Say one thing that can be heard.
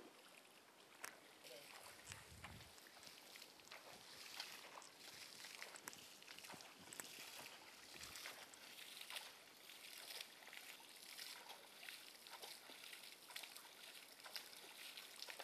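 Water splashes repeatedly as a hand scoops and throws it.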